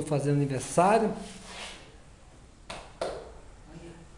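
A tile taps softly as it is pressed down onto wet mortar.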